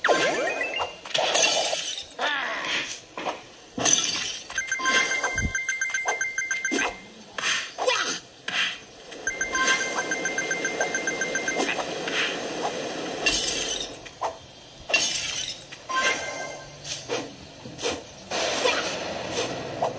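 Game sound effects and chimes play from a small speaker.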